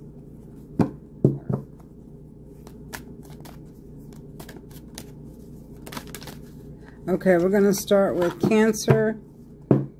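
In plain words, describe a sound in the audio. Cards shuffle and tap together in hands.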